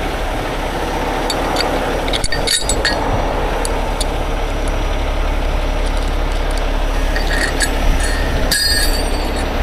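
Heavy metal shackles clink and rattle.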